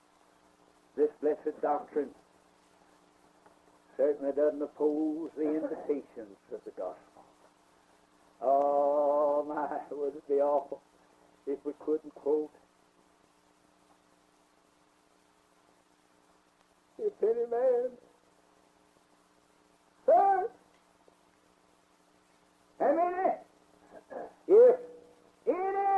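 An elderly man speaks slowly and calmly, with long pauses, on an old recording.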